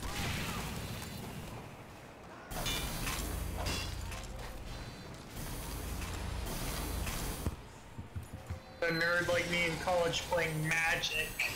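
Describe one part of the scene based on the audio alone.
A shovel strikes with heavy thuds.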